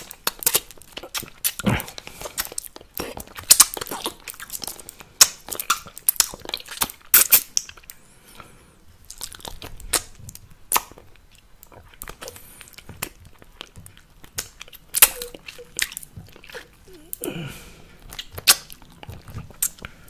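A plastic object taps and clicks against teeth close to a microphone.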